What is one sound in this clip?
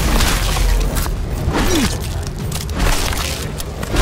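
A heavy chain rattles and whooshes through the air.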